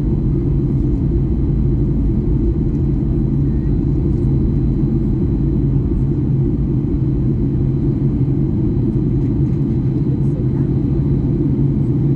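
Jet engines roar steadily and low inside an airliner cabin in flight.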